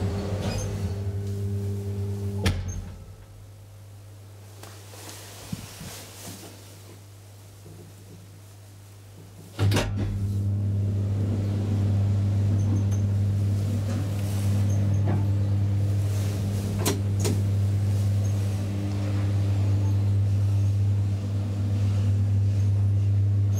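A lift motor hums with a low, steady drone.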